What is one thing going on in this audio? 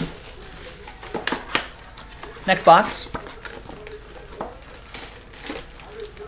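Cardboard rustles as hands open a box.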